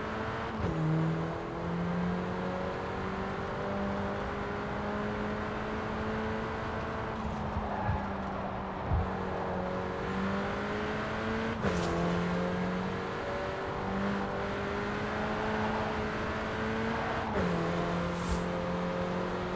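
A car engine hums steadily and its pitch drops briefly at each gear change.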